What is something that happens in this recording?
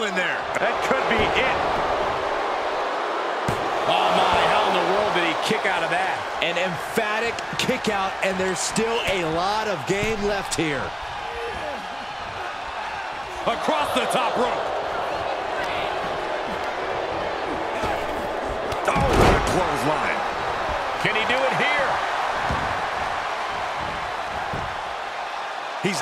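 A large crowd cheers and roars in an arena.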